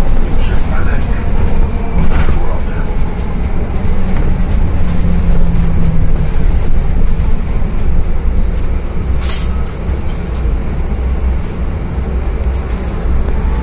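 A bus interior rattles and clatters over the road.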